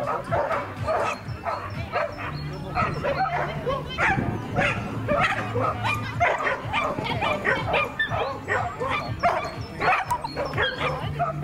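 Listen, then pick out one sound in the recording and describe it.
A woman calls out encouragingly to a dog outdoors.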